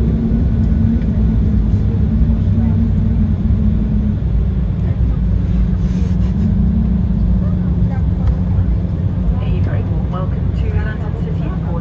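A jet engine roars steadily with a deep rumble as an airliner rolls along a runway.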